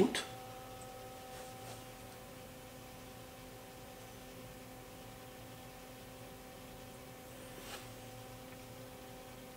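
A water pump hums steadily.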